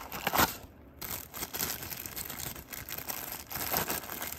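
A plastic wrapper crinkles loudly.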